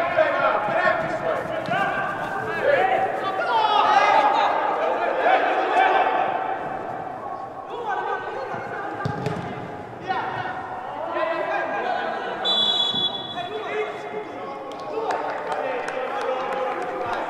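Young men shout and call to each other across a large echoing hall.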